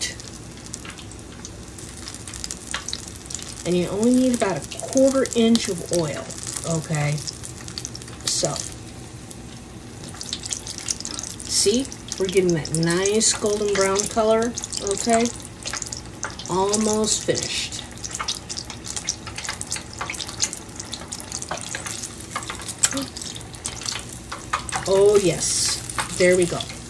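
Oil sizzles and crackles in a hot frying pan.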